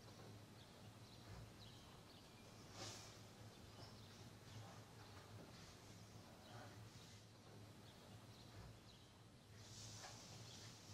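A young man breathes slowly and deeply in his sleep.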